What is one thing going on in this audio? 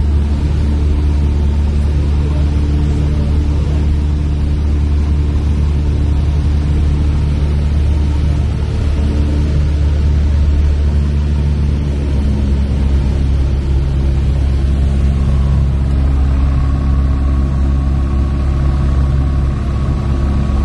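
Wind rushes past the plane.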